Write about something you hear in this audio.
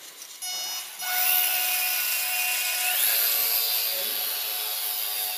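A small electric propeller motor whines up to a high buzz, then rises higher in pitch.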